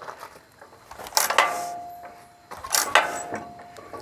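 A tractor's hand crank clanks as a man turns it.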